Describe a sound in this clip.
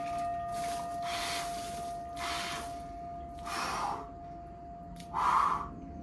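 A man breathes hard in sharp bursts.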